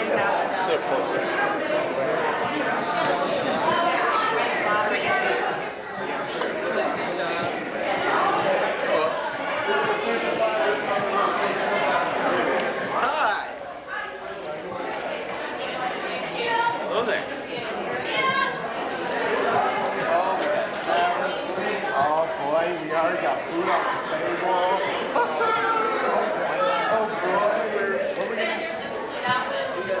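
A crowd of men and women chatter loudly nearby.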